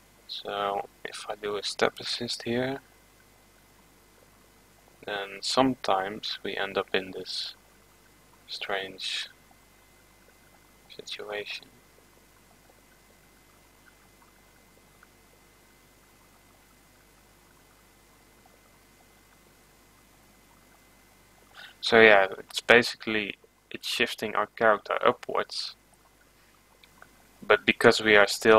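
A young man speaks calmly and close to a microphone, in bursts with long pauses.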